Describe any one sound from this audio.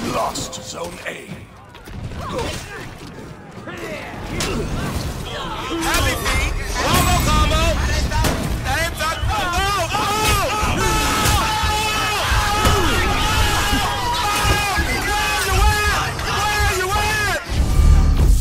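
Metal blades clash and clang in a fight.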